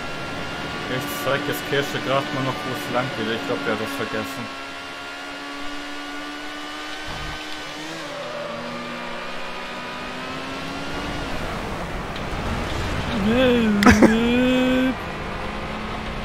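A race car engine whines steadily at high revs.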